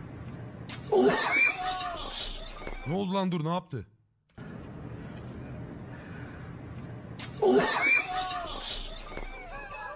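A man laughs loudly and wildly close by.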